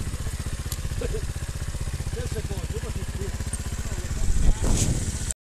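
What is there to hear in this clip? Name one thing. A motorcycle engine idles with a fast, steady putter close by.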